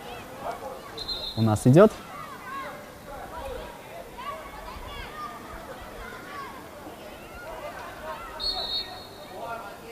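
A referee's whistle gives short blasts.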